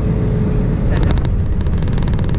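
Wheels thump onto the runway as a plane touches down.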